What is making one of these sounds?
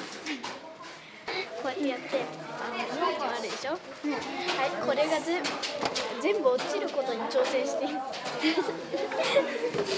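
Young girls chatter and giggle close by.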